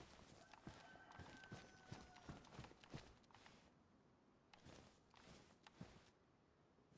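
Footsteps crunch on gravel and then tread through grass at a steady pace.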